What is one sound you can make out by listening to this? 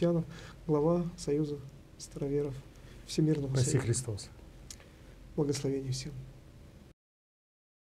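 A middle-aged man speaks calmly into a microphone, close by.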